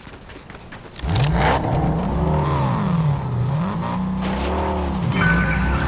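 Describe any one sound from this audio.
A car engine starts and revs up and down.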